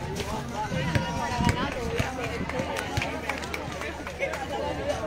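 Several young women chatter and call out outdoors.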